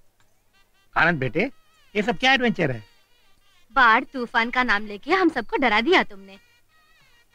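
A woman speaks warmly and with animation, close by.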